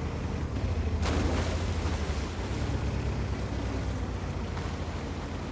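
Water splashes and churns as a tank drives into a lake.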